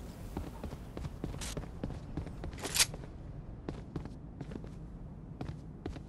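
A door swings open.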